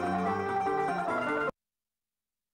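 An acoustic guitar plays a tune.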